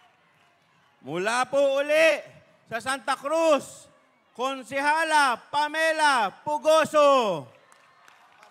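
A man speaks loudly and with animation through a microphone and loudspeakers.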